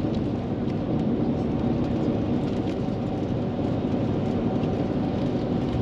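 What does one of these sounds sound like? A truck roars past close by.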